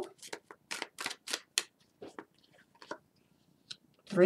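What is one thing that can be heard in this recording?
A card slides onto a table with a soft tap.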